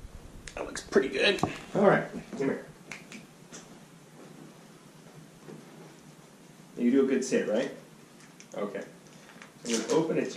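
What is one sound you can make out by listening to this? A man gives calm commands to a dog.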